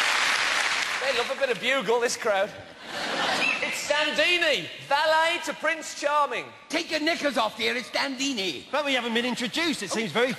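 Women speak with animation.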